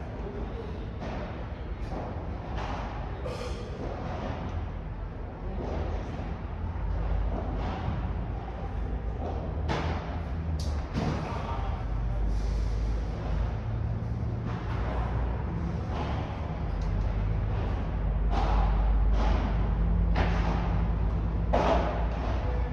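Padel rackets strike a ball with sharp pops in a large echoing hall.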